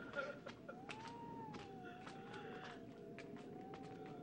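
Footsteps echo faintly down a stone passage.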